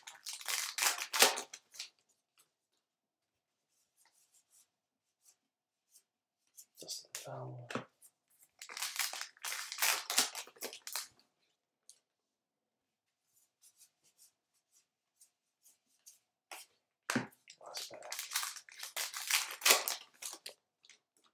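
A foil card wrapper crinkles and tears open.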